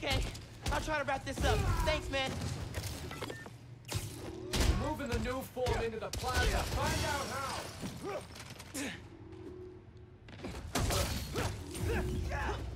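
Punches and kicks land with heavy thuds.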